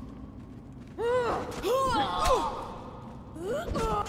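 Blades clash and strike during a fight.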